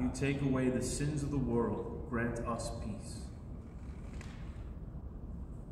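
A man speaks calmly into a microphone in an echoing room.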